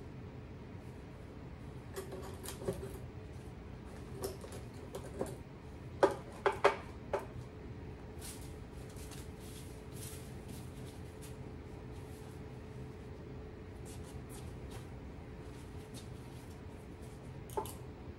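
Small objects clatter and clink as they are rummaged through in a drawer.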